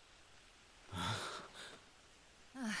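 A woman speaks calmly and quietly.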